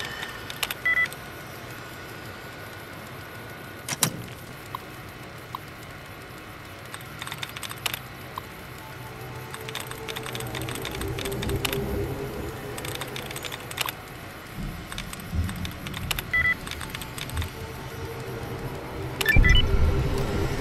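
A computer terminal beeps.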